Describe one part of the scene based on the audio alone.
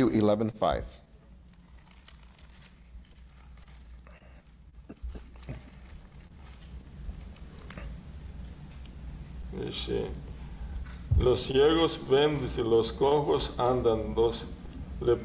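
A man reads out calmly through a microphone in a room with some echo.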